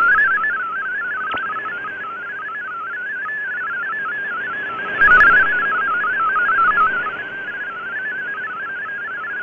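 Static hisses steadily from a shortwave radio.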